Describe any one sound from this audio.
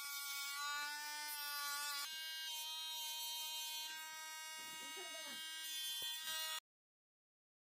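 A small rotary tool whirs with a high, steady whine.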